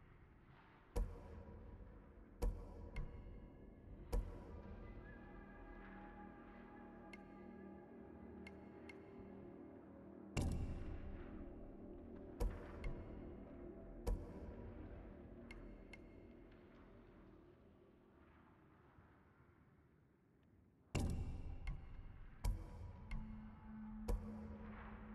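Short menu clicks sound as selections change.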